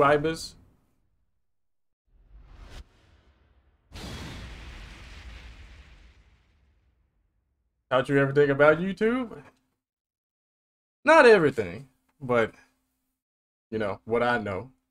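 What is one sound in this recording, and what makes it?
A young man talks with animation.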